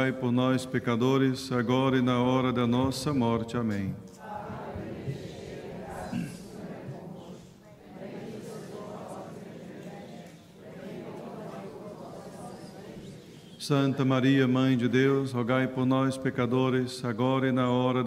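A man chants through a microphone in a large echoing hall.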